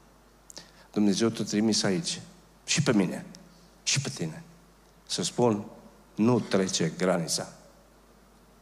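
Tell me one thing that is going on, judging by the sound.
An older man speaks with emphasis into a microphone.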